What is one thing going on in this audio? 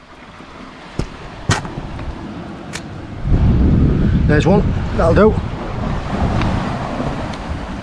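Boots step and crunch on wet rocks.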